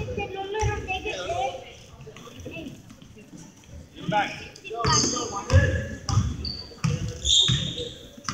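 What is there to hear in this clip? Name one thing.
A basketball bounces on a wooden court in an echoing gym.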